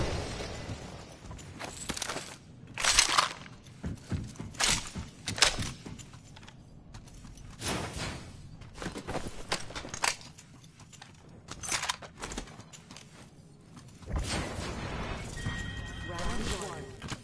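Footsteps clatter on a hard floor.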